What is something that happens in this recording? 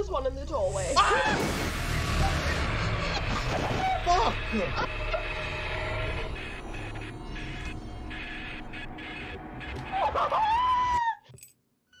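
A man cries out loudly in fright.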